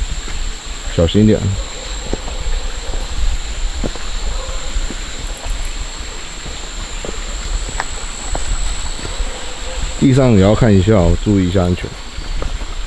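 A young man speaks quietly nearby.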